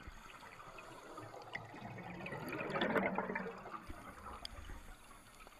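Air bubbles rush and gurgle loudly underwater.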